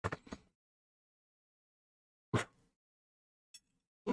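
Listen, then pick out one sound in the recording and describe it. A small metal tool taps softly onto a work mat.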